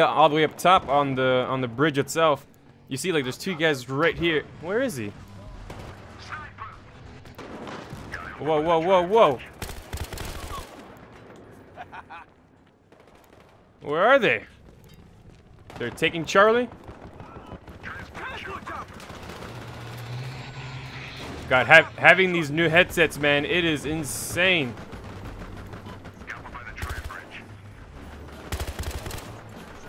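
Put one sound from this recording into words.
Gunfire cracks in short bursts.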